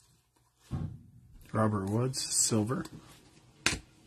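Cards slide and tap against each other.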